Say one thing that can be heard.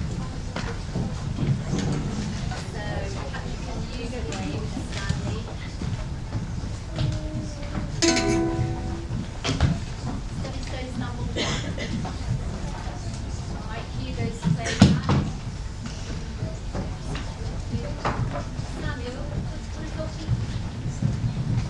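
Many children chatter and murmur in a large echoing hall.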